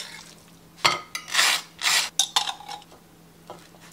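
A knife scrapes spread across toast.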